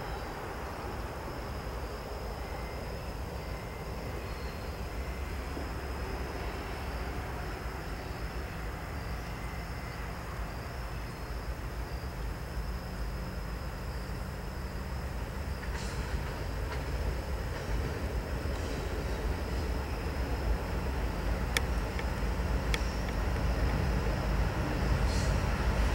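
A diesel locomotive rumbles steadily as it approaches, growing louder.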